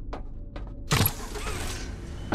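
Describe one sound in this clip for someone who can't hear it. A large button clunks as it is pressed.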